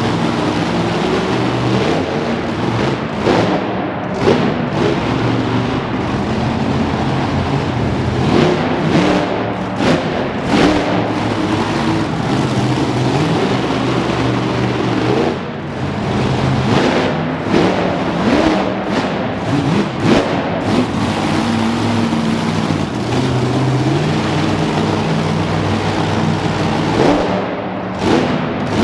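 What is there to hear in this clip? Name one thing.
A monster truck engine roars and revs loudly in a large echoing arena.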